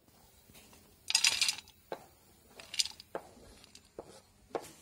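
A knife scrapes chopped pieces off a board into a metal dish.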